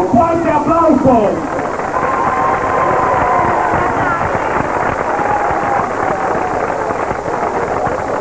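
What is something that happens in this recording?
A crowd of people chatters loudly nearby.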